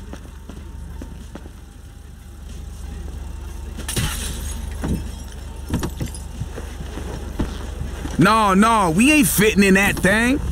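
A car door opens and thuds shut.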